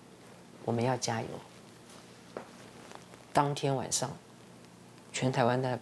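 A woman speaks with animation, close by, in short bursts.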